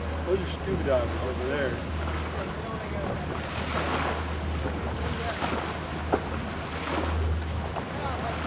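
Wind rushes past on open water.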